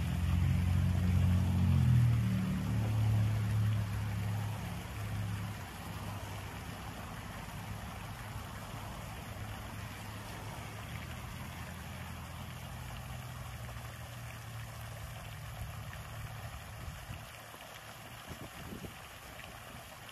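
A fountain splashes steadily into a pool.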